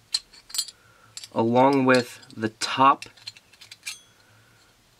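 Small metal parts click softly as fingers handle them.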